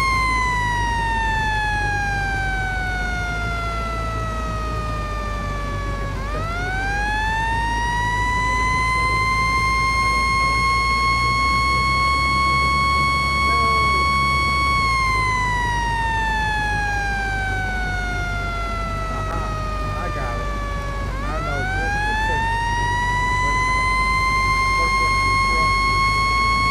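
A siren wails, slowly falling and then sweeping back up, over and over.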